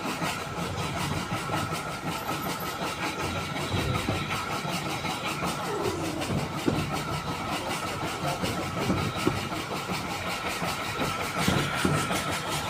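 A train carriage rattles and rumbles steadily along the track.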